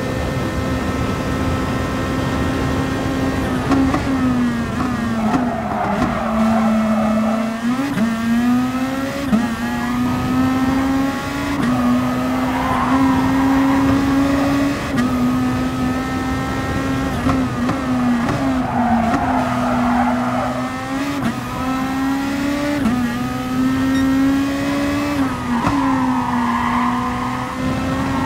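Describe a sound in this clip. A racing car engine roars close by, rising in pitch through the gears and dropping at each shift and braking.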